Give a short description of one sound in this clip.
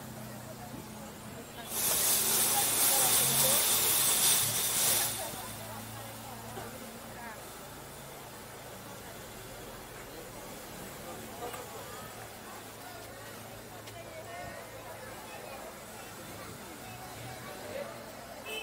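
People chatter in a busy street outdoors.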